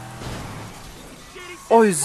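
Glass shatters.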